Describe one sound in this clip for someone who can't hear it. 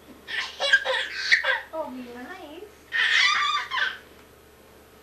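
A baby squeals and babbles loudly nearby.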